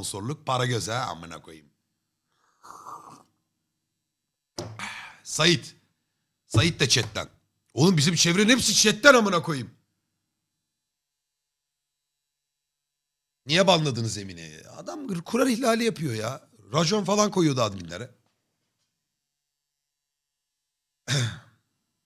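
A man talks with animation into a close microphone, with pauses.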